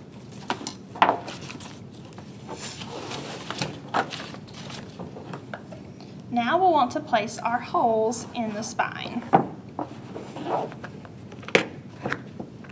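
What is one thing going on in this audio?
A hardcover book thumps softly on a table.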